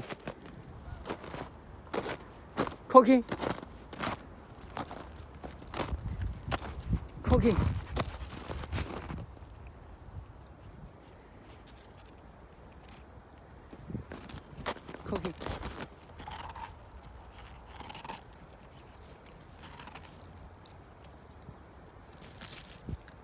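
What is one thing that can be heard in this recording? A dog digs and crunches snow close by.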